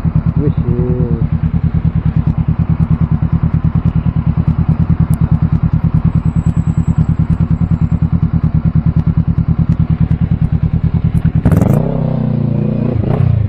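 A motorcycle engine runs at low speed.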